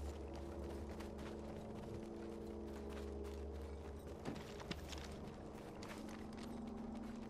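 Quick footsteps run across hard ground.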